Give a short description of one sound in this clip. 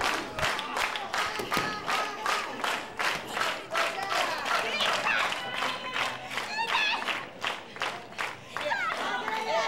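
A crowd claps in rhythm in an echoing hall.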